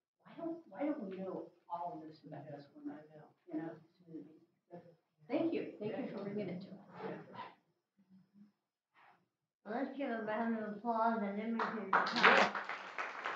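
A woman speaks to an audience.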